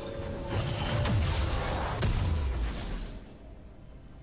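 Game spell effects burst and whoosh in a fight, then die away.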